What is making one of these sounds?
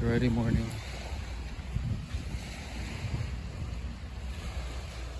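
Small waves lap on a sandy lake shore.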